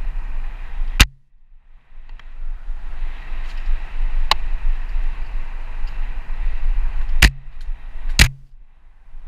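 A bicycle frame clunks sharply over bumps.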